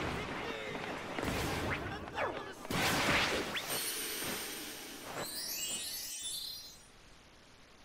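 Game sound effects play loudly.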